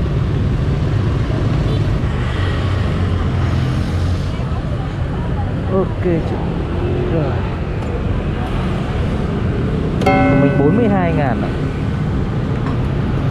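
Wind rushes past a moving motorbike.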